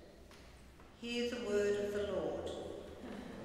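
A man chants a short sung phrase through a microphone in a large echoing hall.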